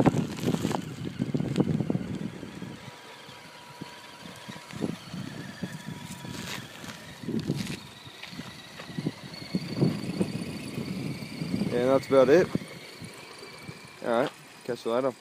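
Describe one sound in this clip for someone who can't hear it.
A small toy truck's electric motor whirs.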